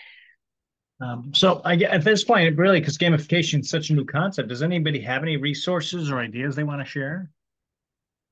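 A middle-aged man talks with animation over an online call.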